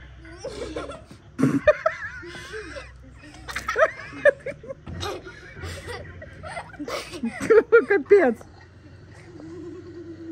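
Girls laugh loudly.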